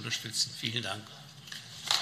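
An elderly man speaks firmly into a microphone.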